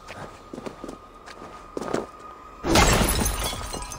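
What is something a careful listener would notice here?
A heavy thud sounds as someone lands from a jump.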